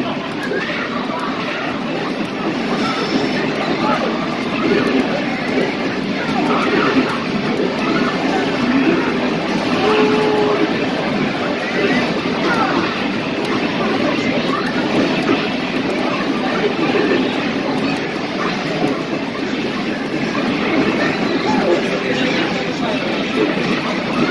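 Game music plays from an arcade loudspeaker.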